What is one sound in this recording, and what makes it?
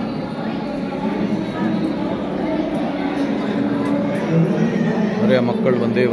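A crowd of men and women chatters nearby in a busy, echoing hall.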